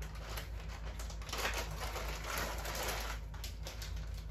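A plastic bag crinkles as it is handled.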